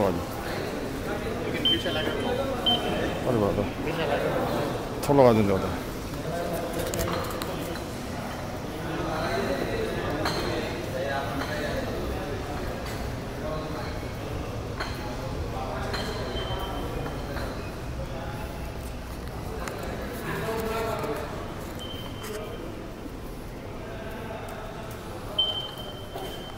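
Footsteps echo on a hard floor.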